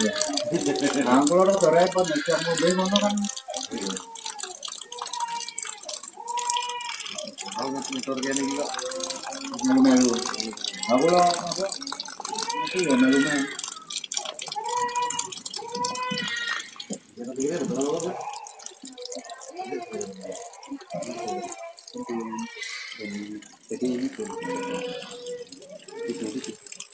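A cat meows repeatedly close by.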